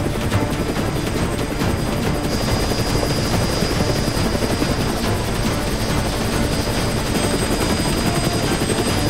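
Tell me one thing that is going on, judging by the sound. A helicopter's rotor thumps loudly and steadily overhead.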